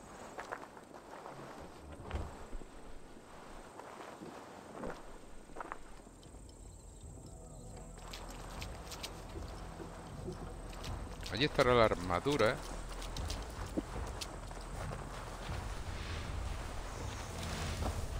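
Soft footsteps crunch on dirt and wood.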